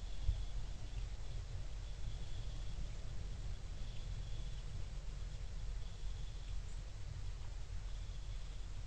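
Wind blows steadily outdoors, rumbling low.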